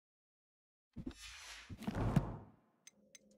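A man speaks briefly and close to a microphone.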